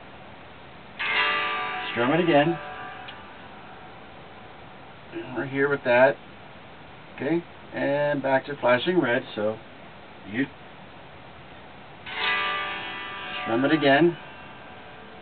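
An electric guitar plays ringing chords close by.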